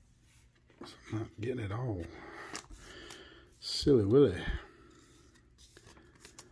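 A thin plastic sleeve crinkles and rustles between fingers.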